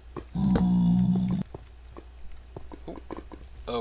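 Lava bubbles and pops softly.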